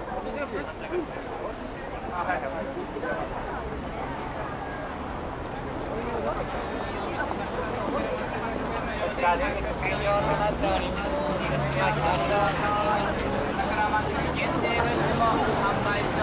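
A crowd of people chatters outdoors all around.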